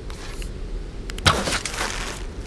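A bow twangs as an arrow is shot.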